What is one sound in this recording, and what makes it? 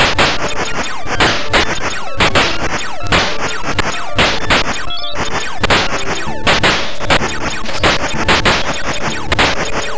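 Rapid electronic shooting sounds fire again and again.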